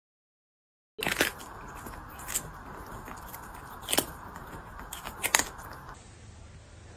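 A kitten crunches and chews on a cucumber.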